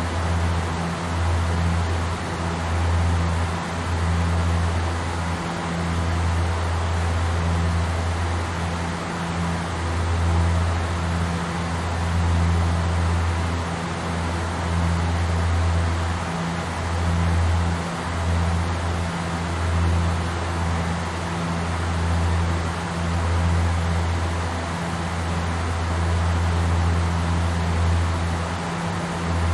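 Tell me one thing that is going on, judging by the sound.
Aircraft engines drone steadily with a low throbbing hum.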